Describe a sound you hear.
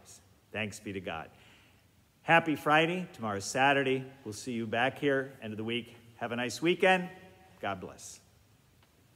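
An elderly man speaks warmly and calmly, close by, in a slightly echoing room.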